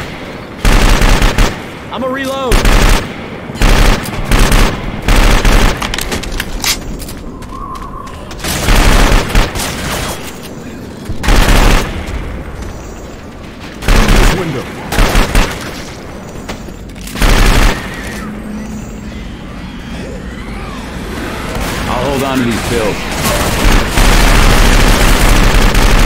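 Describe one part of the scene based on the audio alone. Gunfire bursts out in short, loud volleys.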